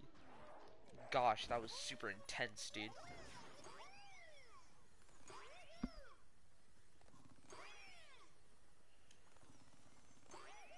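A video game cannon fires and explodes.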